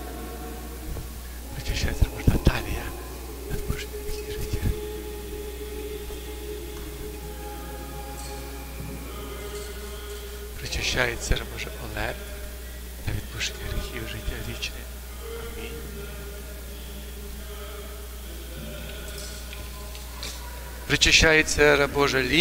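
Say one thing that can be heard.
A man chants in a large echoing hall.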